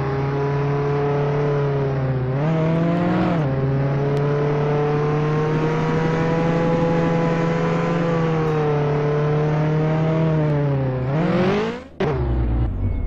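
A car engine hums steadily, rising and falling in pitch as the car drives.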